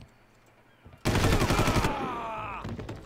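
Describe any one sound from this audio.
Rapid gunfire rattles in a short burst.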